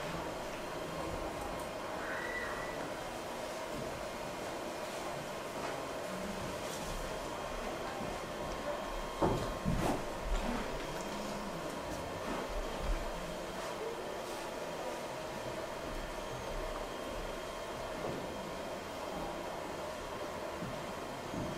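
A young audience murmurs quietly in a room.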